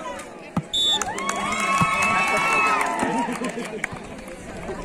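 A crowd of young people cheers loudly.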